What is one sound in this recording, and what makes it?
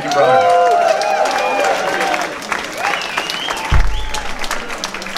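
People in an audience whistle shrilly.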